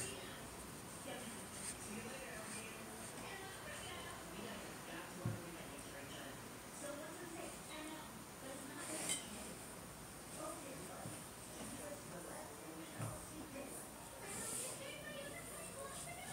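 A young woman speaks softly and close to the microphone.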